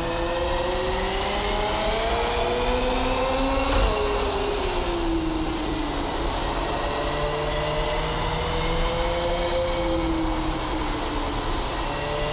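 A racing car engine whines at high revs, rising and falling as it shifts gears.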